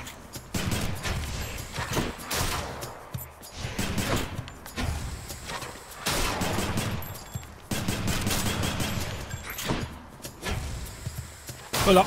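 Weapon strikes and magic blasts crash in quick bursts during a fight.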